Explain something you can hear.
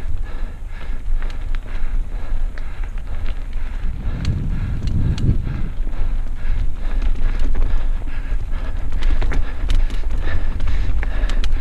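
A mountain bike rattles over rocks.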